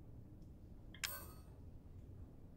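A game menu makes a sharp bright chime as a selection changes.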